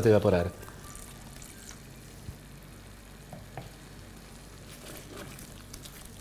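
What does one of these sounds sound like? A wooden spoon stirs a thick sauce in a pot.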